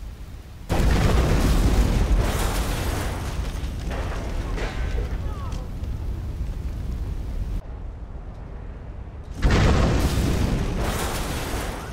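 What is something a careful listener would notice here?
A huge explosion booms and rumbles.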